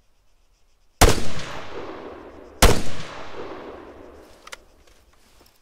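A rifle fires loudly, and the shot echoes and rolls away outdoors.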